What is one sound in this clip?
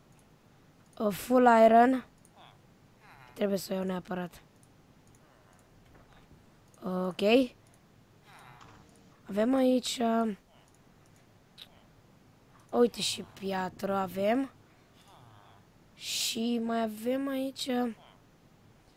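A young boy talks with animation into a microphone, in short bursts.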